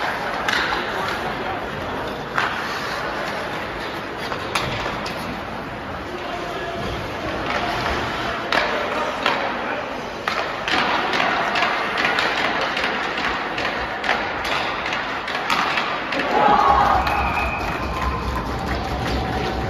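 Skate blades scrape across the ice in a large echoing arena.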